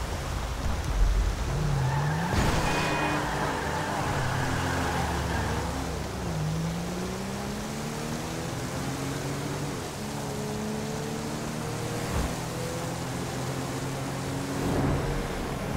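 A car engine revs up and down as it speeds along.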